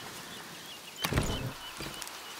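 A wooden chest lid opens with a thud.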